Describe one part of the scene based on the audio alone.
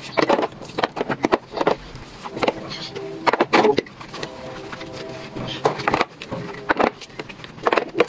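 Plastic trays clatter and knock against each other.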